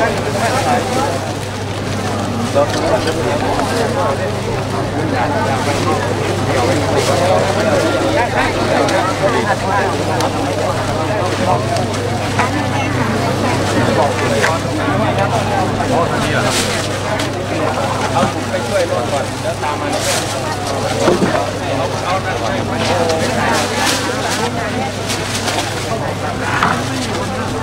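A large outdoor crowd of men and women chatters.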